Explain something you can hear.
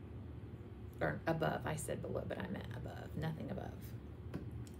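A woman talks calmly into a close microphone.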